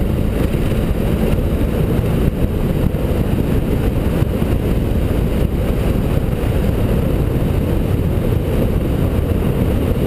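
Wind buffets the microphone.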